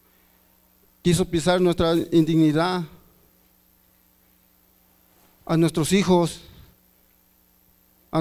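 A middle-aged man speaks earnestly into a microphone, heard through a loudspeaker, with pauses between phrases.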